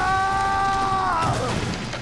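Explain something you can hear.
Wooden boards crash and splinter.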